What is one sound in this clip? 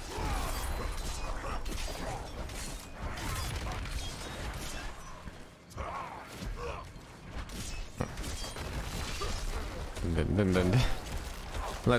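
Weapons strike and slash at monsters in quick, repeated hits.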